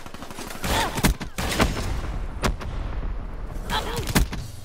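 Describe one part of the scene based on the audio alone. Gunshots crack sharply a few times.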